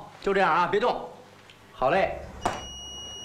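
A man gives brief instructions close by.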